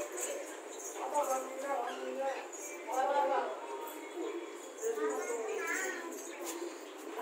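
A puppy squeals and whines up close.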